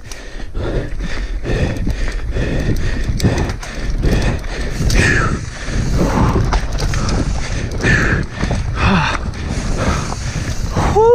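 Bike tyres crunch and rattle over a rough dirt trail.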